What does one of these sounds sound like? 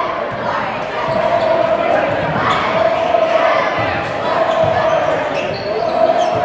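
A large crowd cheers and shouts in a large echoing gym.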